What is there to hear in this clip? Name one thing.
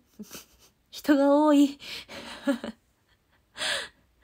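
A young woman laughs, close by.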